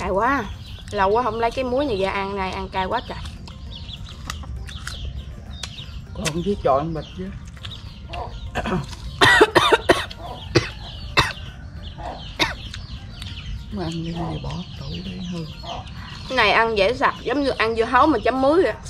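A young woman crunches on crisp fruit.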